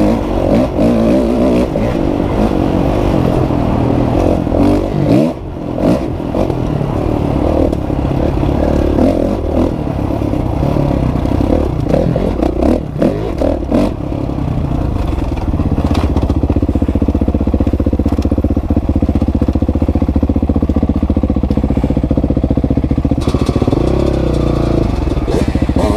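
A dirt bike engine revs and roars close by, rising and falling as it rides.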